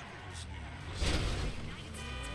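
A car crashes into another car with a heavy thud.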